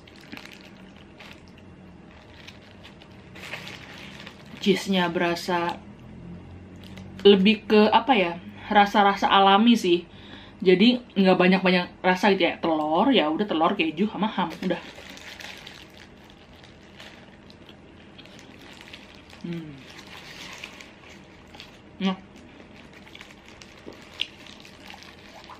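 A paper wrapper crinkles in someone's hands.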